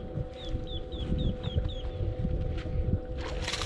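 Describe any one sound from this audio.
A fishing reel whirs as a man reels in line.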